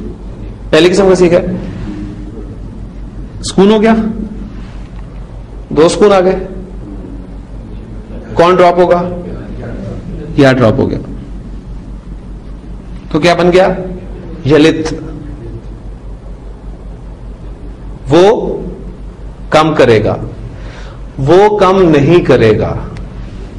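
A man speaks calmly in short phrases with pauses, close by.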